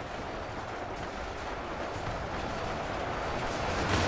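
A distant battle rumbles with gunfire and explosions.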